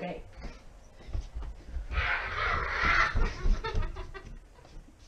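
Footsteps thud quickly across a floor.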